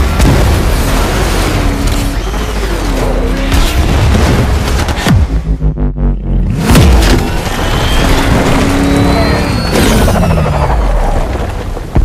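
A car engine roars and revs at high speed.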